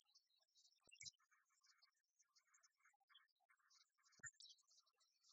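Game pieces click down on a wooden table.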